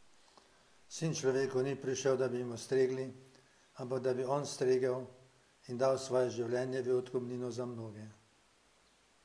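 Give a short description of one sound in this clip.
An elderly man chants a prayer in a steady sung tone, heard through a microphone.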